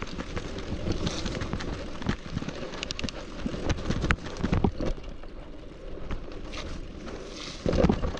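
Bicycle tyres roll and crunch over a bumpy dirt trail.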